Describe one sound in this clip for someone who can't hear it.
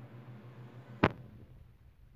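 A nail clipper snaps sharply through a long fake nail.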